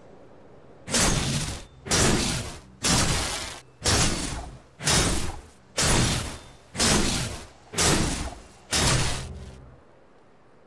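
Heavy magical blasts strike a metal orb in a steady, repeated rhythm.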